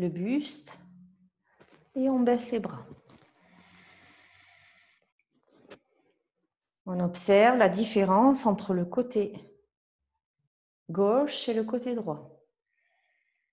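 A woman speaks calmly and clearly, as if guiding an exercise, close to a microphone.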